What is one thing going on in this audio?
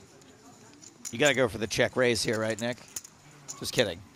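Poker chips click and clatter together on a table.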